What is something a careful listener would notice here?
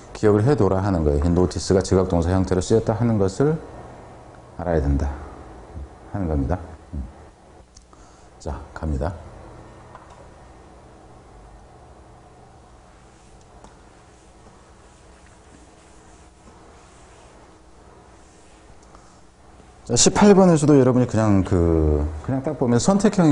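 A middle-aged man lectures calmly into a microphone, with pauses.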